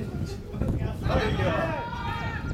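Young men shout an excited appeal across an open field.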